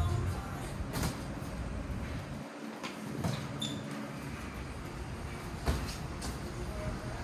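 Boxing gloves thud against each other in quick punches.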